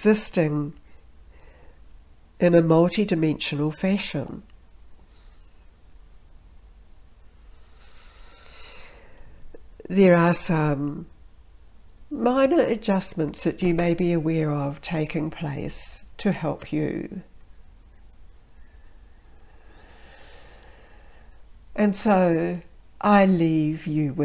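A woman speaks calmly and close up, with pauses.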